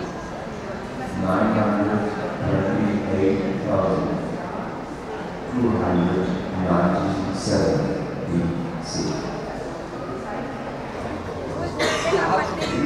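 An elderly man reads aloud calmly into a microphone.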